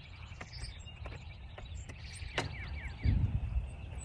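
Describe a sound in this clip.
A window pane knocks as it is lifted out of its frame.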